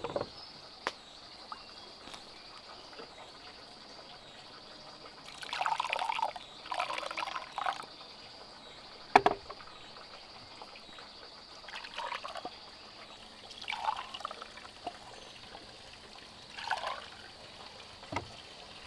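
Bamboo cups knock against each other and the wooden table.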